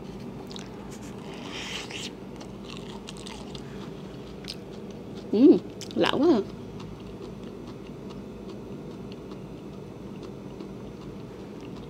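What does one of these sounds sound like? A young woman chews juicy fruit with wet smacking sounds.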